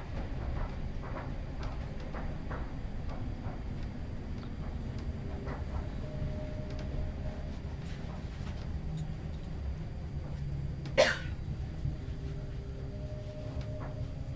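A train carriage rattles and clicks as it moves.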